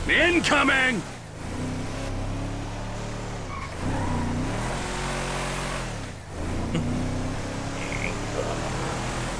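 A truck engine runs and revs as the truck drives along.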